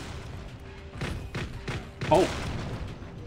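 Explosions boom in quick succession.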